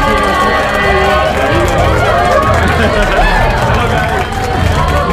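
A crowd of people chatters and laughs nearby.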